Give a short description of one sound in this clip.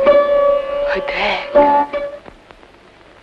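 A young woman sings in a high voice.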